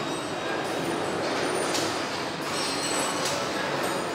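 An automated cart whirs as it rolls across the floor.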